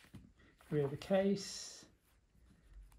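A page of a book is turned with a papery rustle.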